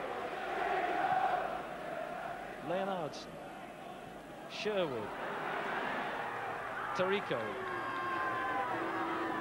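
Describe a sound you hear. A large crowd roars and chants in a stadium, heard from afar.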